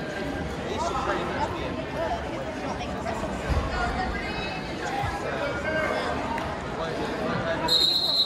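A crowd of spectators talks and calls out in a large echoing hall.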